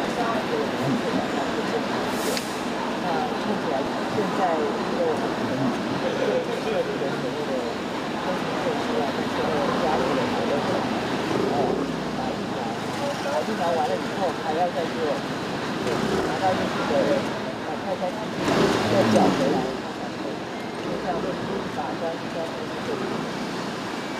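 A woman speaks steadily into microphones close by.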